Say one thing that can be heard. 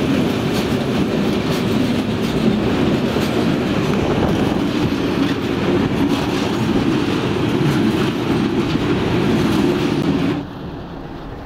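A train rumbles and roars steadily, heard from inside a carriage, then suddenly goes quiet.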